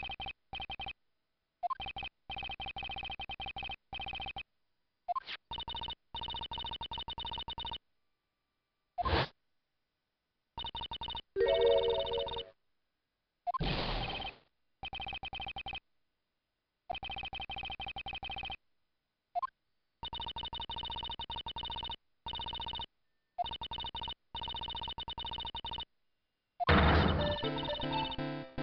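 Rapid electronic blips chatter in bursts.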